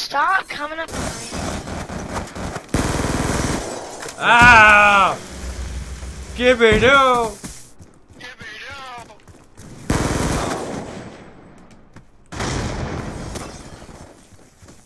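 Gunfire bursts rapidly from a game.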